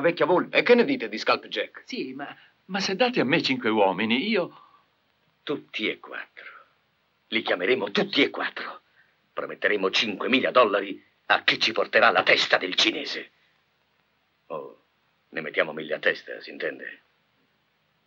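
An older man speaks with animation close by.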